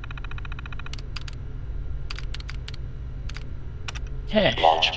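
Keys click on a keyboard.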